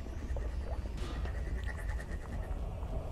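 A game's energy gun fires with a sharp electric zap.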